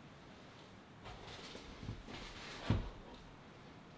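A woman shifts in place with soft rustles and knocks.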